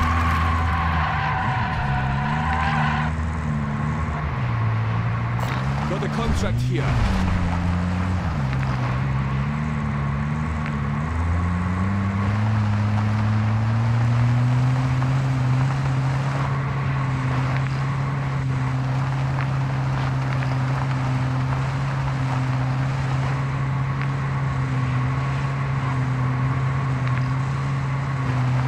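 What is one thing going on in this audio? A car engine hums and revs as the vehicle drives.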